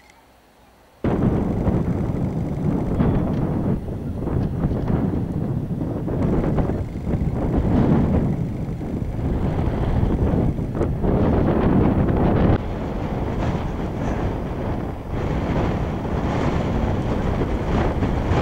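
Wind blusters loudly across an open hillside outdoors.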